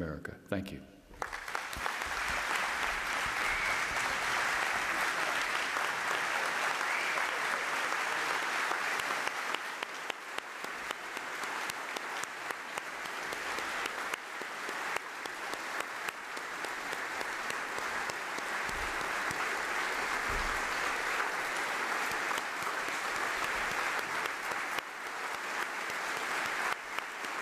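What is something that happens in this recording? A large crowd applauds steadily in a big echoing hall.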